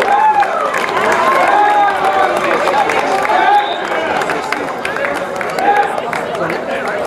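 People in a crowd whistle loudly.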